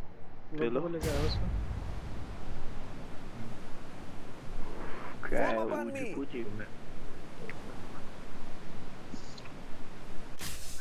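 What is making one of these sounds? Wind rushes past during a freefall.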